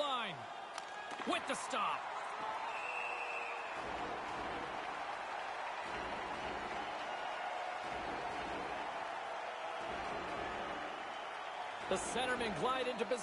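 A large crowd cheers and murmurs steadily in an echoing arena.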